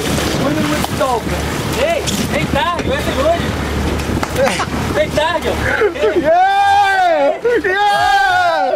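A man shouts and whoops excitedly close by.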